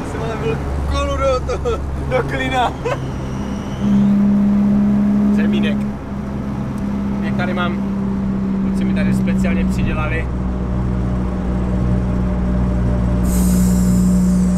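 A car engine drones steadily while driving.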